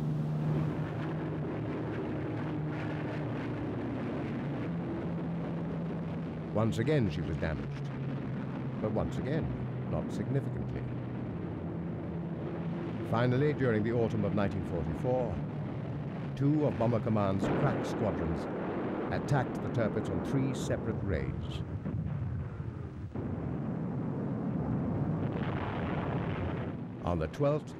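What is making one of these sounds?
Aircraft engines drone steadily overhead.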